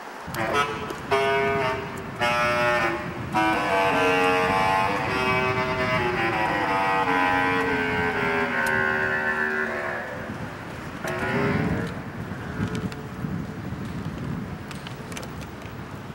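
Metal keys on a bass clarinet click and rattle as it is fitted together.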